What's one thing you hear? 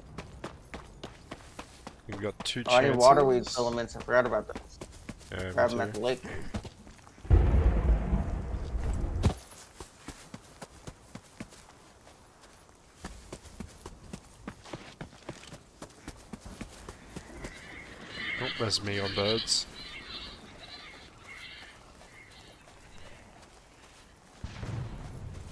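Footsteps tread steadily over grass and dirt.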